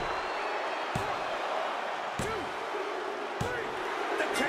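A referee slaps the mat three times in a pin count.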